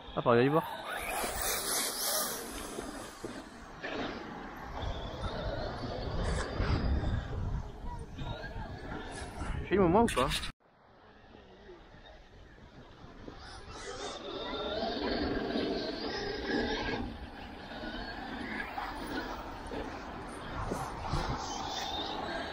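A small model car's motor whines and revs.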